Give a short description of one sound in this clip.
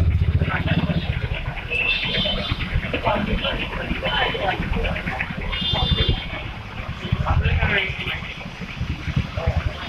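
A large truck engine rumbles close by.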